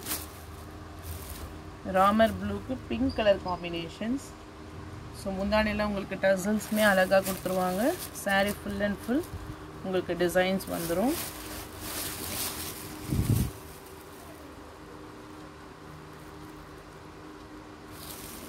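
Silk fabric rustles softly as hands unfold and handle it.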